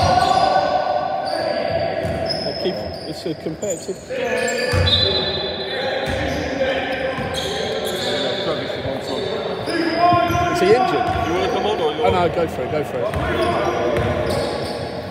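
Sneakers squeak sharply on a wooden floor in a large echoing hall.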